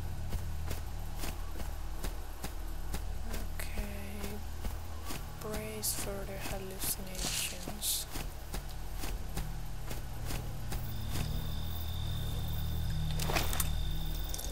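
Footsteps crunch steadily through dry grass.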